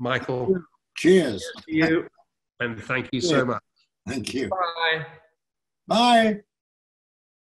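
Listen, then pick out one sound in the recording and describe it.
An elderly man speaks cheerfully over an online call.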